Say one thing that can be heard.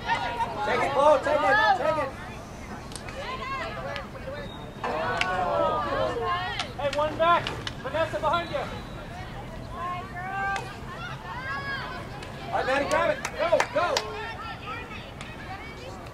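Hockey sticks clack against a ball.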